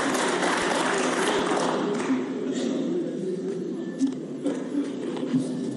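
A man speaks steadily into a microphone in a large, echoing hall.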